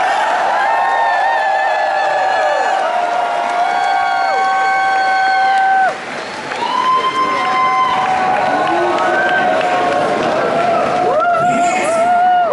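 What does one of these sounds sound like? Electric guitars play loud, sustained, soaring notes through amplifiers.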